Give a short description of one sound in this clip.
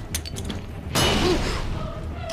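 A grenade explodes with a loud, roaring blast.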